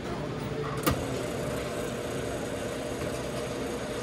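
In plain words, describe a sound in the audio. A soda fountain pours a drink into a paper cup.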